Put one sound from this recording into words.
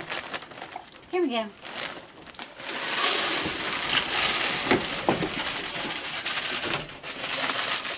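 Dry cereal rattles as it is poured from a plastic bag.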